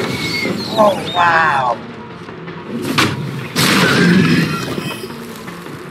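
Wooden planks crash and splinter.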